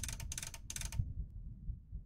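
A safe's combination dial clicks as a hand turns it.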